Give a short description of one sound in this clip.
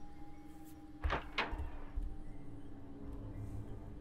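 A heavy wooden door creaks open.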